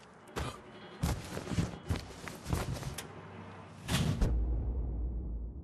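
A car engine rumbles and drives off.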